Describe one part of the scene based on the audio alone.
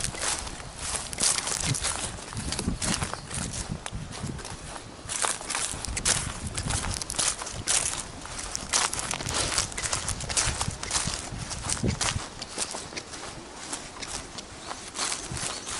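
Footsteps crunch through dry leaves and grass outdoors.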